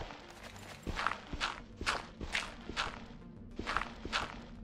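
Crunchy digging sounds repeat at a steady pace.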